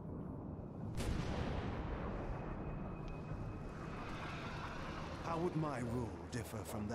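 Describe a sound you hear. A green blast roars and rumbles.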